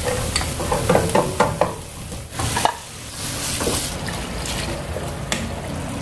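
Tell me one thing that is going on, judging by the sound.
A wooden spatula scrapes against a pan.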